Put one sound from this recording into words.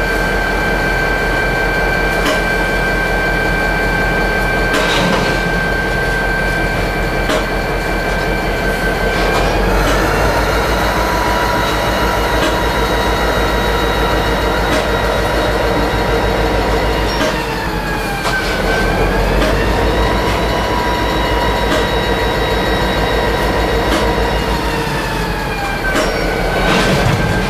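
Metal clanks and rattles in a locomotive cab as the locomotive rolls along.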